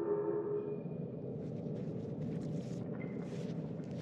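A backpack rustles as it is lifted and slung on.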